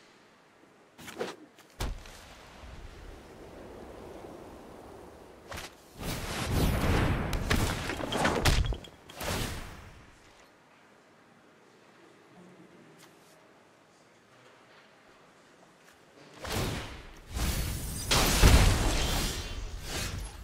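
Digital game sound effects swell and chime as cards come into play.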